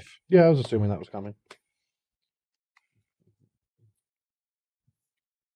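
Playing cards slide and tap softly on a table.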